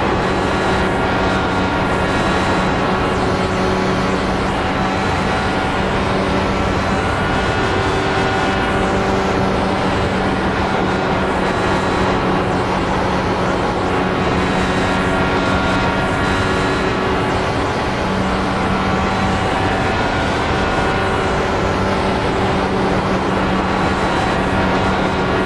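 An open-wheel racing car's engine drones steadily at full throttle.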